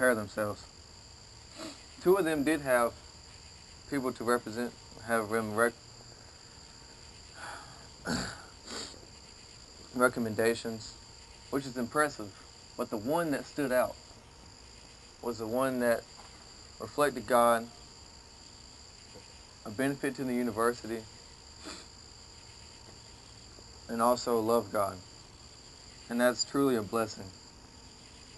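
A young man reads aloud in short, lively bursts, outdoors.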